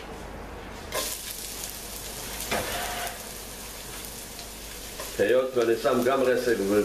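Onions sizzle loudly in hot oil.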